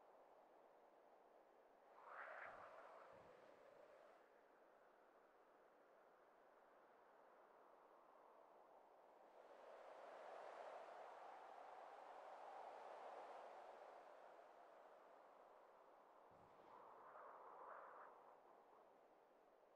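Wind rushes past, swelling and fading.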